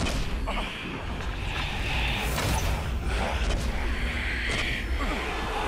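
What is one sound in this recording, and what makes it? A bowstring twangs as arrows are loosed, one after another.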